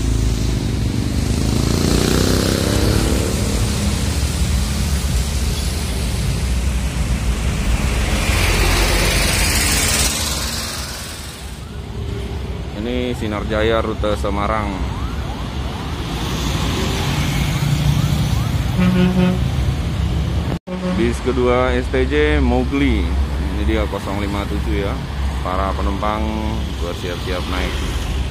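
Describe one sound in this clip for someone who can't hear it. Traffic passes along a busy road.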